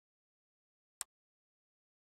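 A golf club strikes a ball with a short, sharp click.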